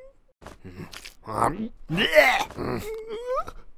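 A woman cries out in distress.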